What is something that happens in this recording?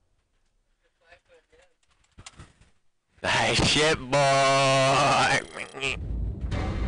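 Young men talk and exclaim with animation close to a microphone.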